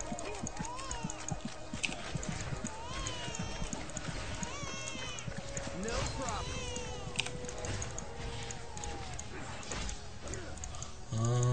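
Video game fight effects whoosh, zap and clatter.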